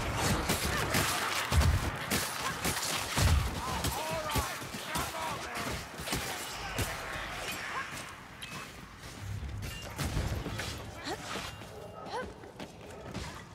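Rat creatures squeal and shriek.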